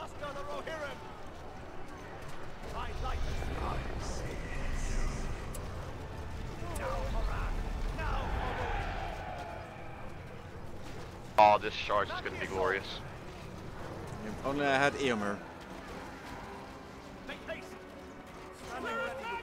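Soldiers shout in battle.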